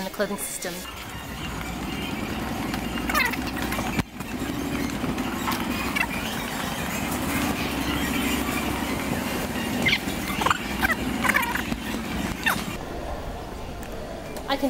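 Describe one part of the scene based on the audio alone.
Trolley wheels rumble steadily over a smooth floor.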